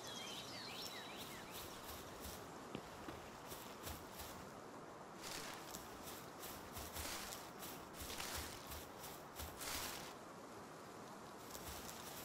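Footsteps pad across grass.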